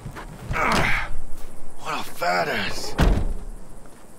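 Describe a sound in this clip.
A car's boot lid slams shut.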